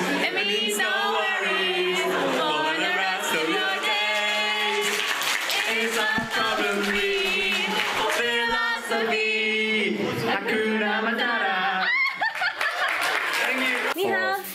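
A young woman speaks cheerfully into a microphone.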